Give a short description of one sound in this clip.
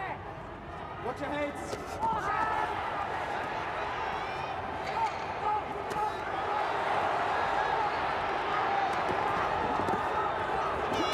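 Punches thud against a boxer's body and gloves.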